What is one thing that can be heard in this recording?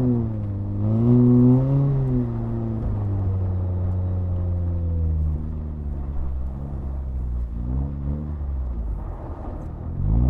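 Tyres crunch and slide over packed snow.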